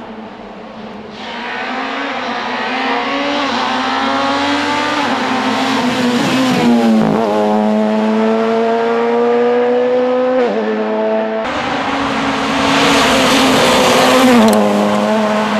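A rally car engine roars loudly, revving up and down through the gears.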